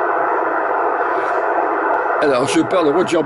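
Static hisses from a CB radio receiver.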